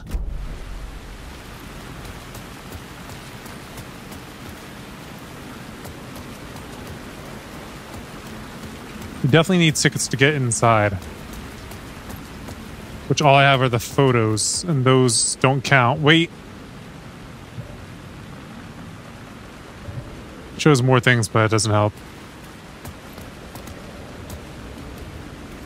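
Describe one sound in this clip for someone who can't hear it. Footsteps tread on a pavement.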